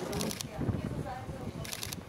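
A woman speaks briefly outdoors.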